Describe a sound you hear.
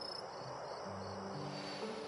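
Magical sparks crackle and fizz briefly.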